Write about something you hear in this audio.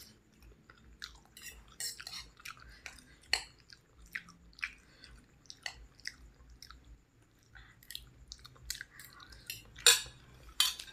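A fork and spoon clink and scrape on a plate.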